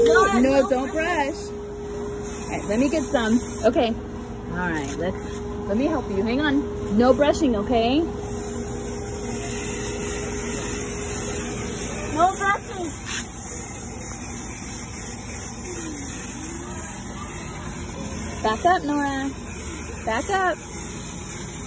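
A young girl talks and squeals excitedly nearby.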